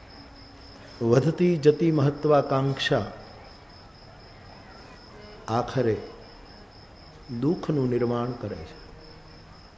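An elderly man speaks slowly and expressively into a microphone, with pauses between phrases.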